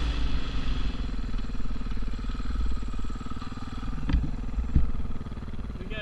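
A dirt bike engine revs under load through soft sand.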